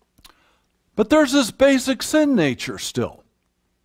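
An elderly man speaks with emphasis through a microphone.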